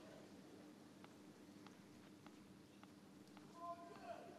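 A tennis ball bounces repeatedly on a hard court.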